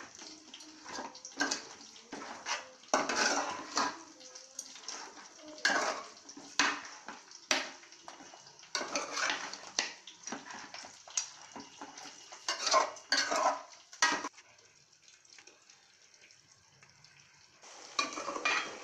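A metal ladle stirs chicken pieces, scraping and clanking against a steel pot.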